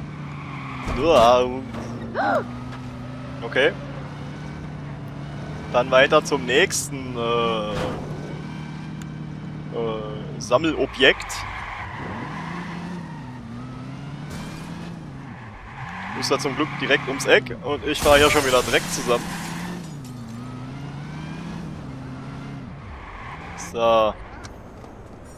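Car tyres screech in short bursts.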